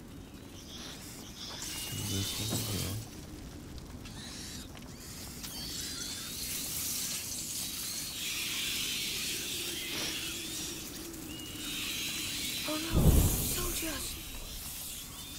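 A fire crackles and hisses nearby.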